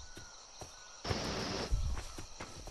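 Leafy plants rustle as they are brushed through.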